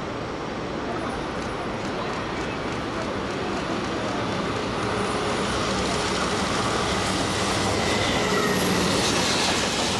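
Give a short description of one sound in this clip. A freight train approaches and rumbles past close by, growing louder.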